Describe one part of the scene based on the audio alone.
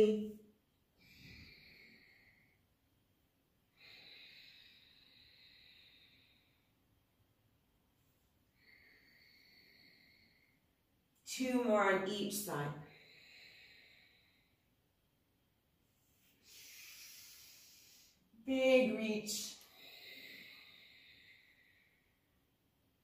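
A woman breathes out slowly and audibly.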